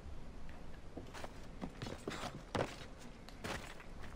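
Hands and feet knock on a wooden ladder during a climb.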